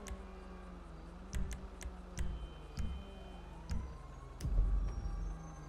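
Menu selections click and beep.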